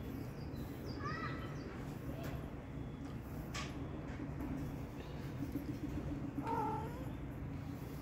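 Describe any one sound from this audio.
A kitten meows with short, high cries.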